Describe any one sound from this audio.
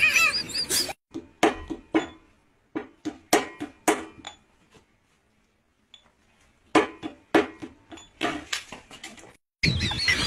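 A hand slaps a table sharply several times.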